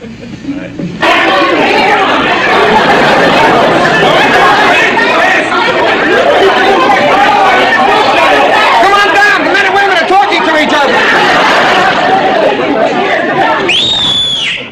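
Several men and women talk over one another.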